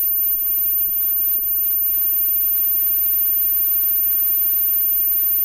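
A rock band plays loudly through amplifiers.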